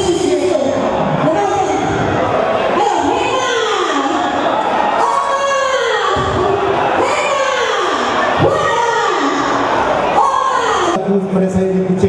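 A large crowd shouts and cheers loudly.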